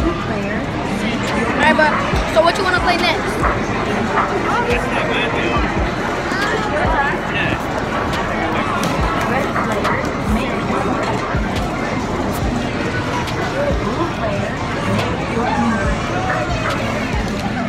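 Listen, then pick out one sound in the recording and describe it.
A crowd chatters all around.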